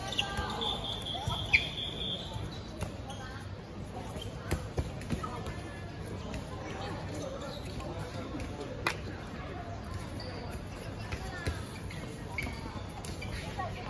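Balls bounce on a hard court.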